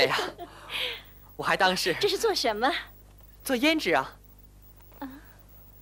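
A second voice answers in a bright, sing-song stage voice.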